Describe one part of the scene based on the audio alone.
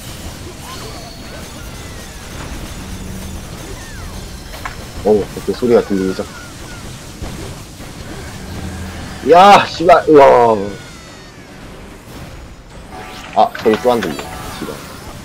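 Magic blasts and hits crash again and again.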